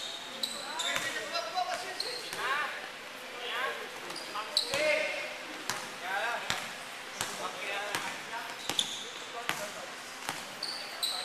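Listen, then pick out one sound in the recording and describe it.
Young men shout and call out to each other in a large echoing gym.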